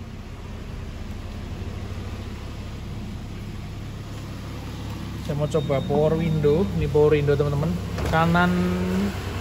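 A car engine idles with a low steady hum.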